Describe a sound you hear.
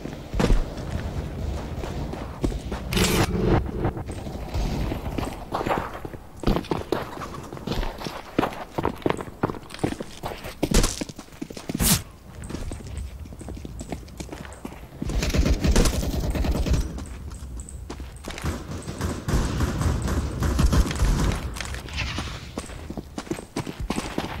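Footsteps run quickly across stone ground.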